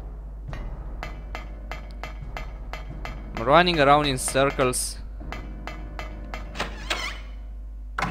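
Footsteps clang quickly on a metal grate.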